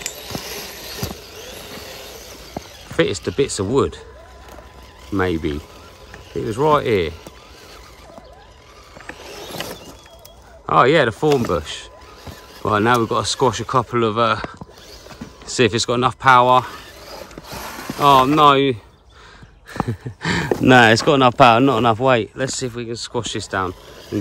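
Grass and leaves rustle under a toy car's wheels.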